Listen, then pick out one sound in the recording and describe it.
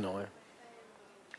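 A man speaks out loud, briefly.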